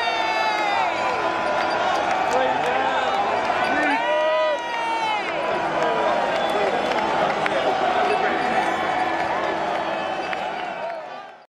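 A large crowd outdoors cheers and shouts loudly.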